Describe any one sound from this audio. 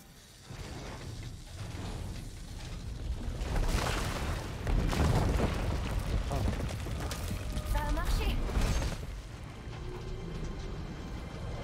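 A heavy stone door grinds and rumbles as it slowly turns open.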